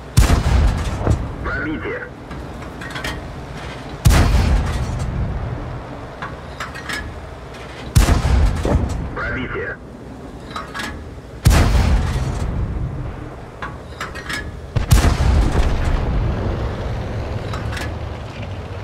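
A tank cannon fires with a loud boom that rumbles away.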